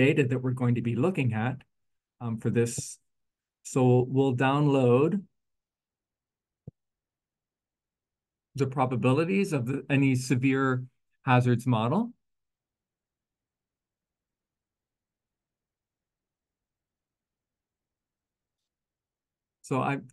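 A man speaks calmly into a close microphone, pausing now and then.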